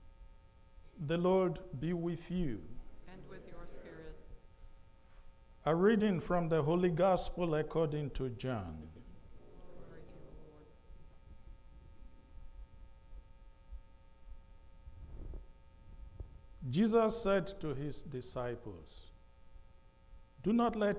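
A man speaks calmly into a microphone in a reverberant hall, pausing between phrases.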